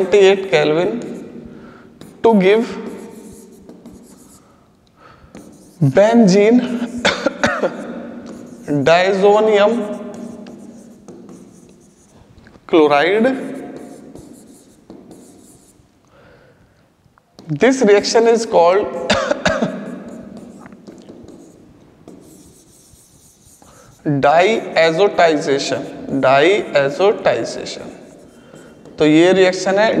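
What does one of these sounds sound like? A man explains something with animation, close to a microphone, in an echoing room.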